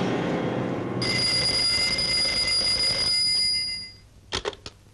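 A telephone rings loudly.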